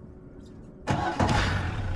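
An outboard engine idles.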